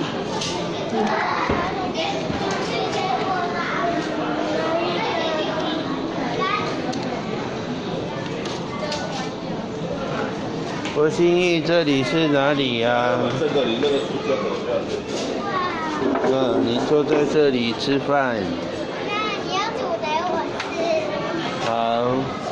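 A crowd murmurs and chatters indoors.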